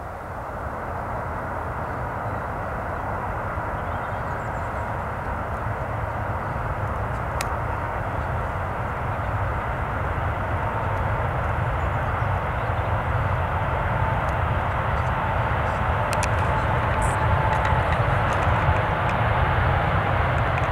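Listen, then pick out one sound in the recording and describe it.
A large jet airliner roars loudly as it speeds down a runway, growing louder as it approaches.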